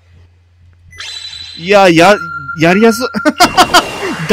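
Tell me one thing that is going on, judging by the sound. A magical burst swells with a loud shimmering whoosh.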